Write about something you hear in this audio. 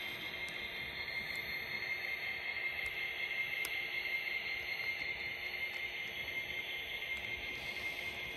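Small train wheels roll along a track with a steady whir.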